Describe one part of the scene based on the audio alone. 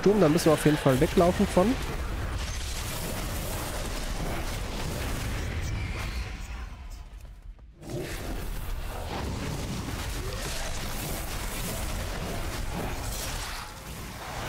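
Weapons clash and magic blasts burst in a fast, busy fight.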